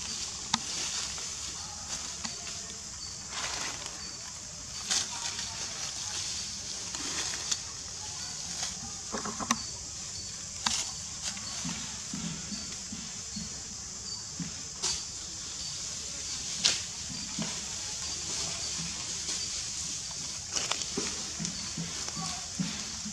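Dry leaves rustle and crackle as a baby monkey moves through them.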